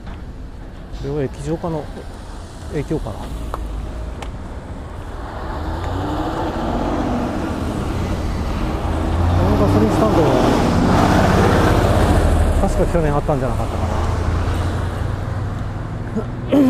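Cars pass by on a road.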